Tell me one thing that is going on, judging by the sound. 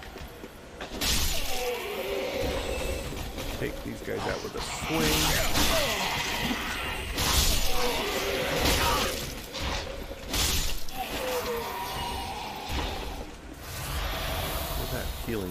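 Blades clash and slash loudly in a fight.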